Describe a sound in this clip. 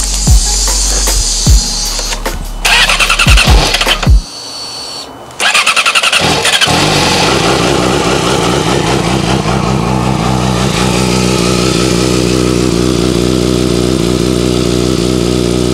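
A motorcycle engine idles with a steady rumble.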